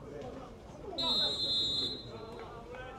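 A referee's whistle blows a short shrill blast.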